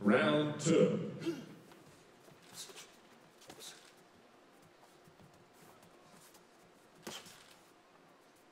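Boxing gloves thump as boxers trade punches.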